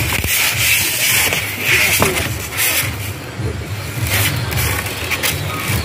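Styrofoam squeaks and rustles as it is rubbed.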